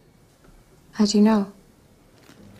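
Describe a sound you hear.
A young woman answers quietly with a question.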